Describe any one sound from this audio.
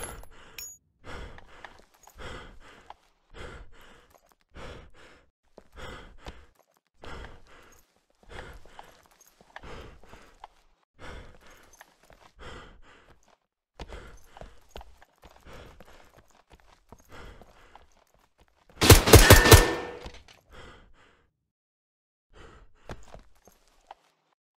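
Footsteps thud on a concrete floor.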